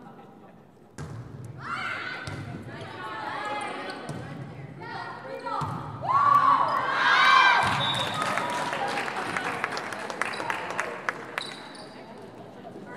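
Young women shout and cheer, echoing in a large hall.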